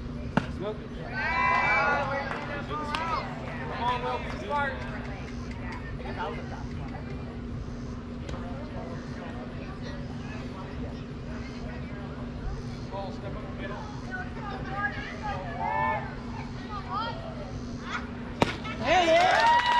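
Young players and spectators shout and cheer from a distance outdoors.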